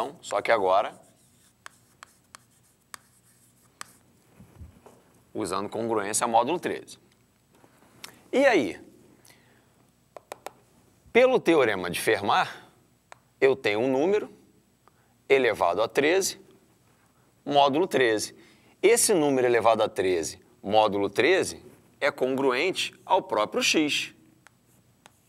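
A man speaks calmly, close by, in short phrases with pauses.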